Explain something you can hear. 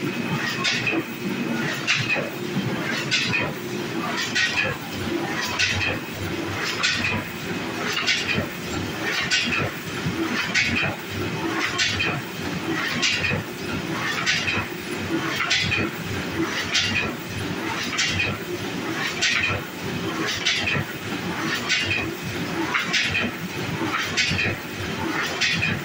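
A printing press clatters in a regular rhythm, about every second and a quarter.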